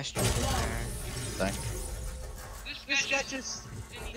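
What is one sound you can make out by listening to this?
A video game ability crackles and whooshes.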